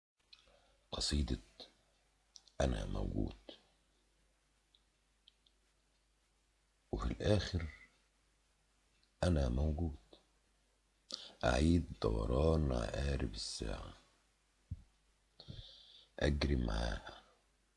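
A man recites slowly and expressively, close to the microphone, with pauses between lines.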